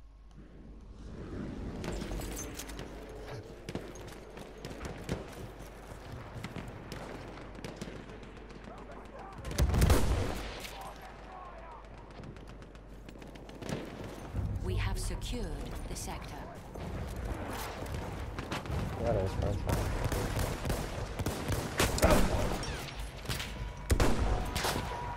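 Distant gunfire and battle noise rumble in a stormy wind.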